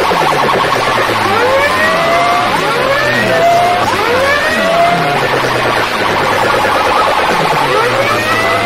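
Loud music blares from a bank of loudspeakers, with a swooping sound repeating over and over.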